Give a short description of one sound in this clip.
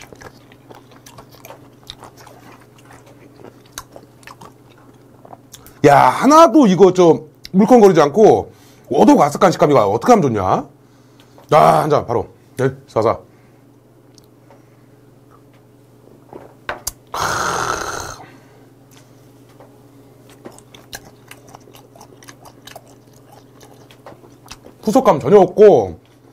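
A man chews food and slurps noisily.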